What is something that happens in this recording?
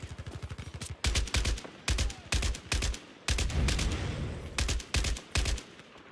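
A rifle fires in short, loud bursts close by.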